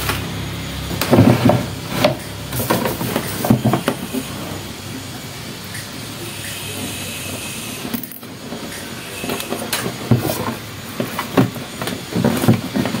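Plastic parts knock and rattle as a man works inside an appliance.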